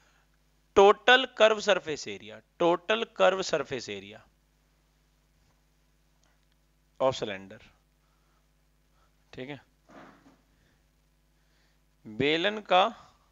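A man speaks calmly and clearly into a close microphone, explaining.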